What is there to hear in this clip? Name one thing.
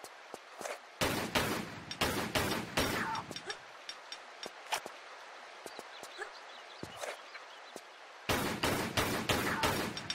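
Pistols fire in rapid bursts, with shots ringing out in an echoing space.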